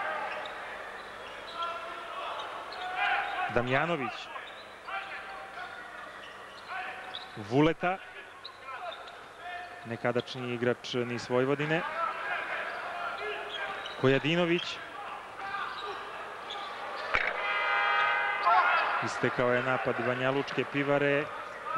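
A crowd in a large echoing arena cheers and chants throughout.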